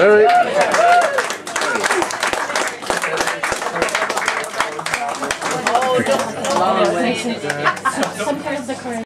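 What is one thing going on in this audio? A crowd of men and women sings along loudly, close by.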